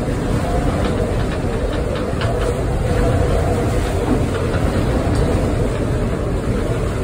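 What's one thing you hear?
Spray and rain spatter against the windows.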